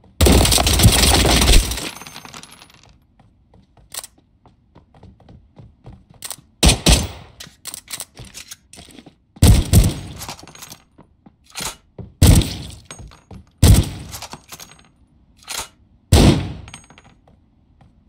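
Loud gunshots fire in rapid bursts, echoing sharply.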